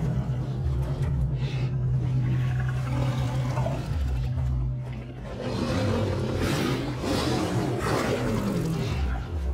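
Two big cats snarl and growl fiercely at each other, close by.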